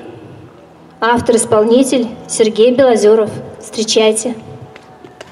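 A woman sings through a microphone outdoors.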